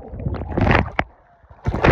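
Water splashes as a man surfaces.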